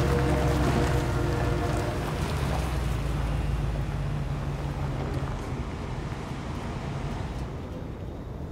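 A car engine rumbles low and then fades as the car drives off.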